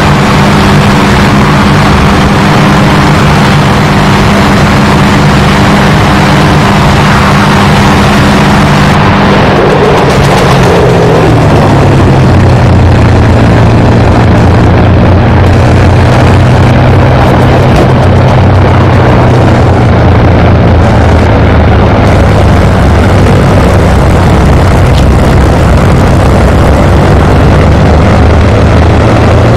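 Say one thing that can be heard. A propeller plane's engine drones steadily, its pitch dropping lower partway through.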